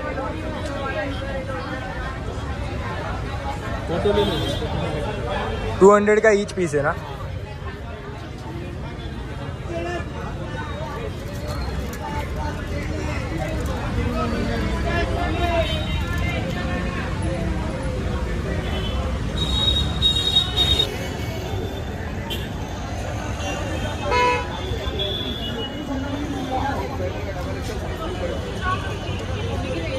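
A crowd chatters nearby.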